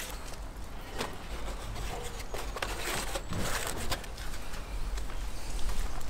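Flatbread rustles as it is lifted and folded.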